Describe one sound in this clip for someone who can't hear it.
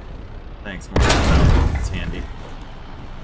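A tank cannon fires with a loud, heavy boom that rumbles away.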